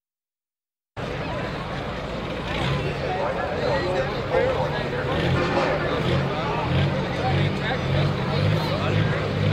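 A loud tractor engine rumbles and roars at idle nearby.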